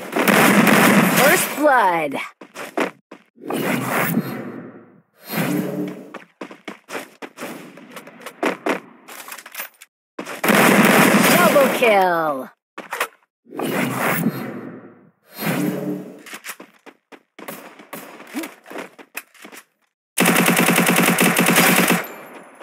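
Gunshots crack in quick bursts.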